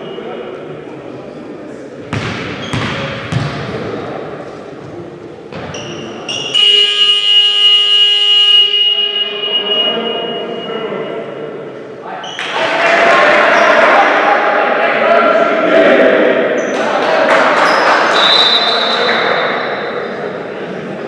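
Many people chatter and shout, echoing around a large hall.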